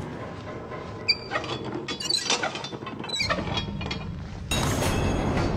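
A metal valve wheel squeaks and clanks as it is turned.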